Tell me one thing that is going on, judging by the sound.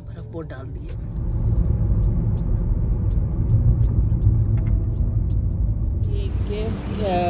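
A car's engine and tyres rumble steadily while driving.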